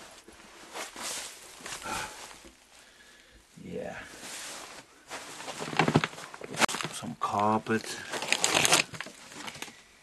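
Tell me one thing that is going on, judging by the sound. Footsteps crunch on loose debris.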